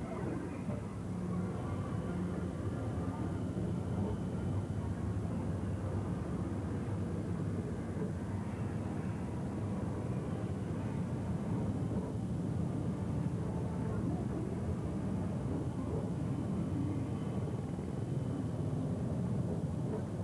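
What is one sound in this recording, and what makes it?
A ride car hums and rumbles steadily along its track.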